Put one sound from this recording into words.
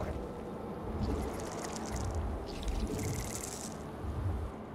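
Game sound effects hiss and crackle.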